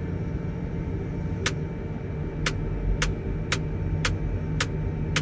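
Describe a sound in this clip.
A crane's engine hums steadily.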